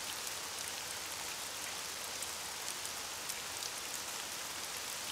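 Rain patters against a window.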